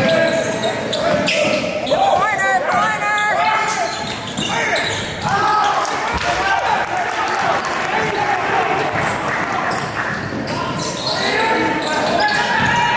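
Young men shout and call out in a large echoing gym.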